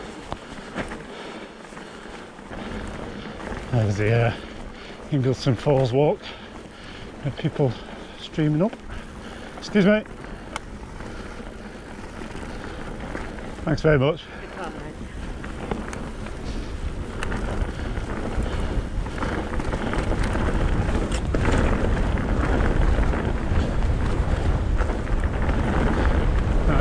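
Bicycle tyres rumble and rattle over a rough, rutted track, growing louder as the ride speeds up.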